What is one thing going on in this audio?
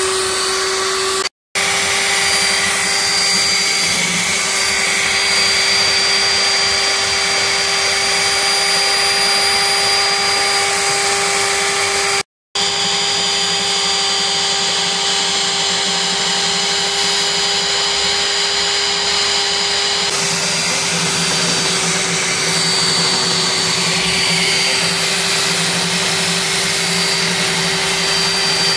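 A core drill motor whines steadily as it bores into concrete.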